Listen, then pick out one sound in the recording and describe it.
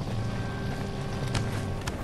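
A torch flame crackles and hisses.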